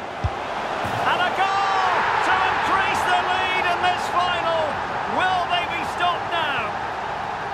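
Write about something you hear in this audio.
A stadium crowd roars loudly as a goal is scored.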